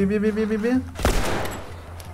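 A pistol fires once, with a sharp bang.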